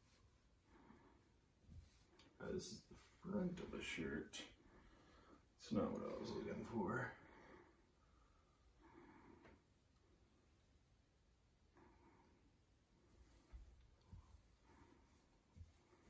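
Cloth rustles and flaps as a shirt is handled and shaken out.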